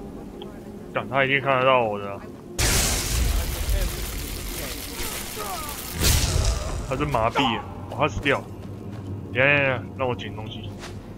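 A young man talks close to a microphone with animation.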